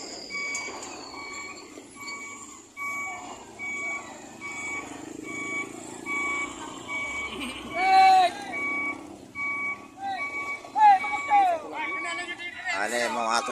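A truck's reversing alarm beeps in a steady, even rhythm.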